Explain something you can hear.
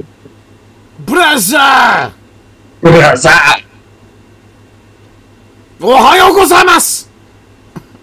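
A man speaks loudly and with animation into a close microphone, in short bursts.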